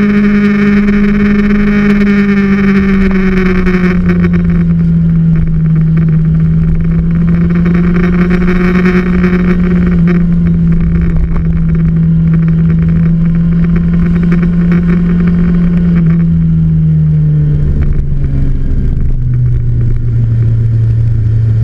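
A motorcycle engine hums steadily close by, its pitch slowly dropping.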